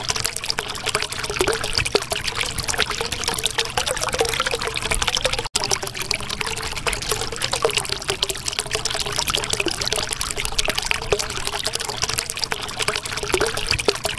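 Bubbles gurgle and pop steadily underwater.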